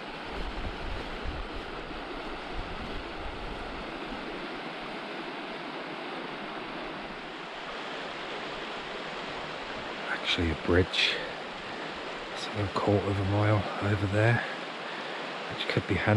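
A stream rushes steadily over rocks.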